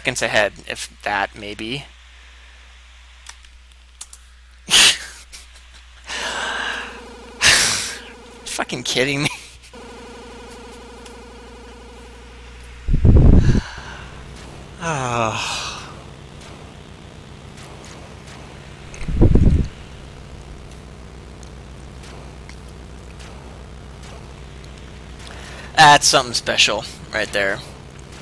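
A young man with a headset speaks excitedly and laughs, heard close through a microphone.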